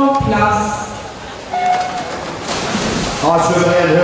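Swimmers splash through the water in a large echoing hall.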